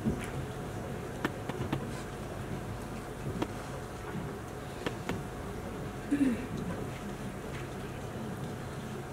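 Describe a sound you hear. Feet shuffle and tap on a stage.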